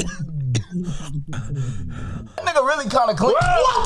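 A young man talks and laughs excitedly close to a microphone.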